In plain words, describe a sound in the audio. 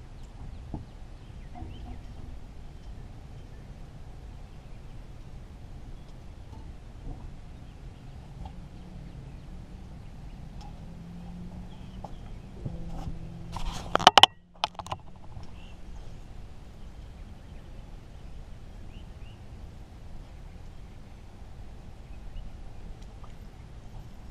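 A fishing reel clicks softly as line is wound in.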